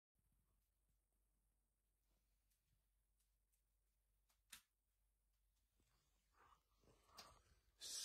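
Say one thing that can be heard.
Paper rustles softly as a sheet is handled.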